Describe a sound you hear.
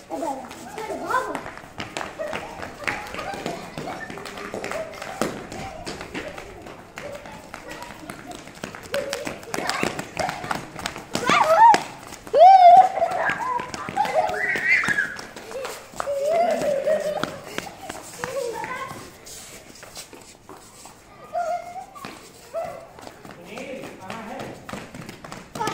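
Footsteps patter on a hard floor as children run.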